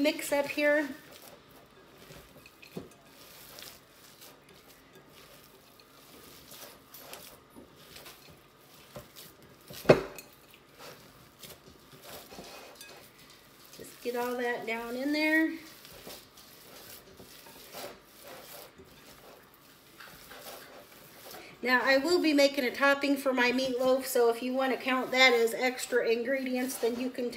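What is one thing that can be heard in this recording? Hands squish and knead wet ground meat in a bowl.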